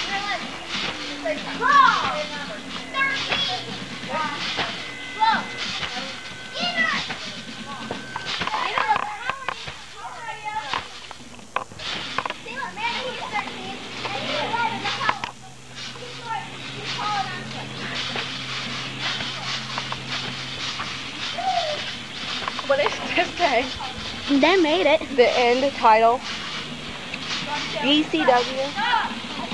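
A trampoline creaks and thumps as boys bounce on it.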